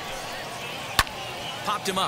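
A bat cracks sharply against a ball.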